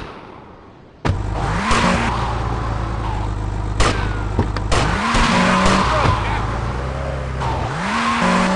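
A car engine revs, rising in pitch as it shifts gears.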